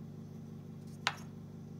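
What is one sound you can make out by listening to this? A wooden piece knocks sharply once.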